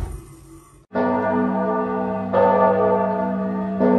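Church bells ring out loudly outdoors.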